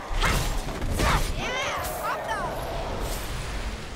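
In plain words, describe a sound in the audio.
A creature snarls and shrieks while attacking.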